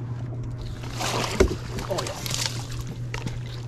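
Water splashes as a fish is netted beside a boat.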